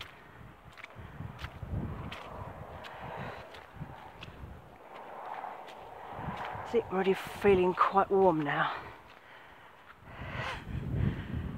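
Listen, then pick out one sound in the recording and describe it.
Footsteps crunch on a muddy path.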